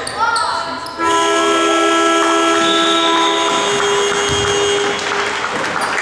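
A loud horn blares steadily for several seconds.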